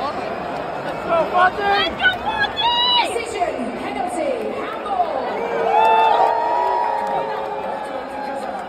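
Fans nearby shout and whistle with excitement.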